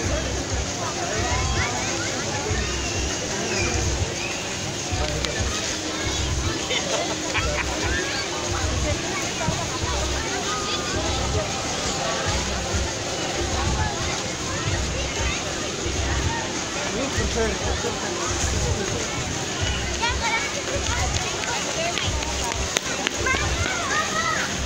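Water laps gently against the shore.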